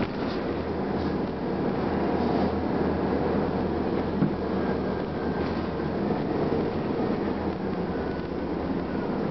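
Tyres roll and hum on the road.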